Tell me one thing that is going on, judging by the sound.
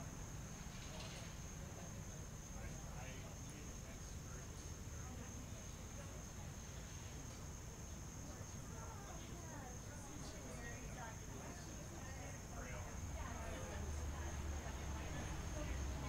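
A crowd of men and women chat with one another at once outdoors.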